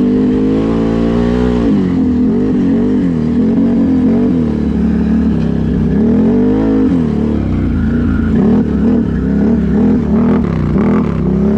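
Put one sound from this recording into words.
A small engine drones up close, its pitch rising and falling as it revs.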